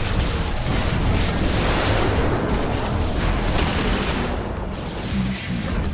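Sci-fi weapons fire and blasts crackle in a battle.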